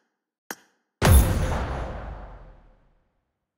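A deep whooshing boom swells and slowly fades.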